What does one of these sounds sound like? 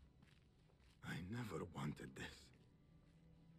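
A man speaks earnestly and quietly.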